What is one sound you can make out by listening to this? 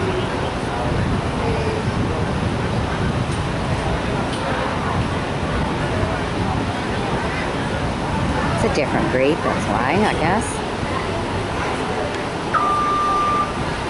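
A small crowd murmurs and chatters in the background.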